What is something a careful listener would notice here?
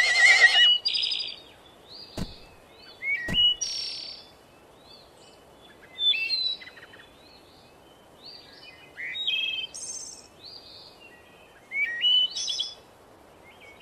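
Cartoon horses whinny and snort in short bursts.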